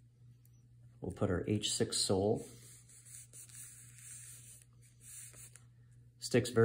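A hand rubs across the sole of a shoe.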